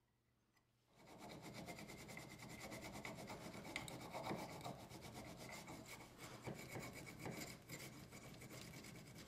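A knife blade scrapes and shaves wood.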